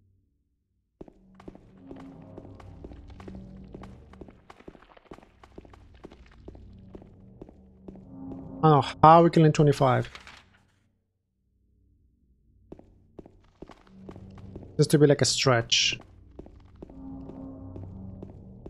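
Footsteps echo on a hard floor.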